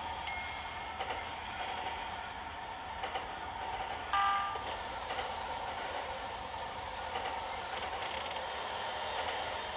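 An electric commuter train runs along the track at speed.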